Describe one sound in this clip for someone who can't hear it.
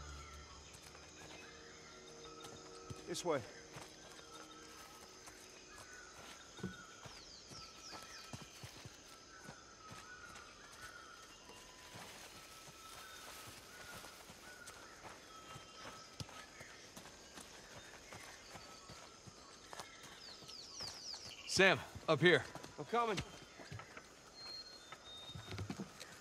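Footsteps tread on a dirt path.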